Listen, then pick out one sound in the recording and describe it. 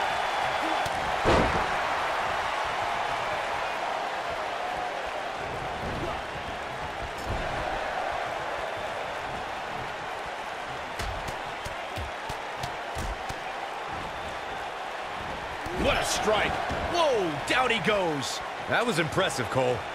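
Blows and body slams thud on a wrestling ring mat.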